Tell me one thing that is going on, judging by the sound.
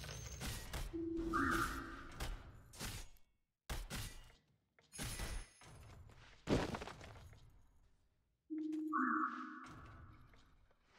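Short game chimes ring out.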